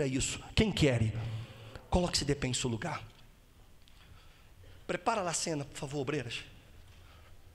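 A man preaches with animation through a microphone and loudspeakers in a large echoing hall.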